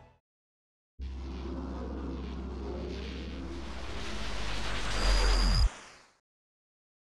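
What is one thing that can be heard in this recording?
A deep rumbling magical whoosh swells and then cuts off.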